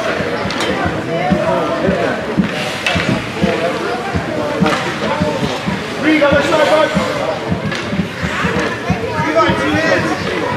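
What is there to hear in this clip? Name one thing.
Skates scrape on ice.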